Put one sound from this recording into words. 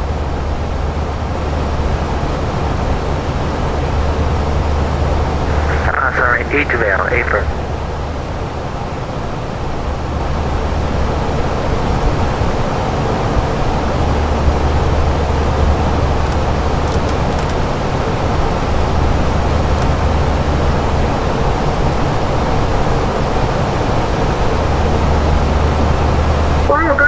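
A jet engine drones steadily inside an airliner cockpit.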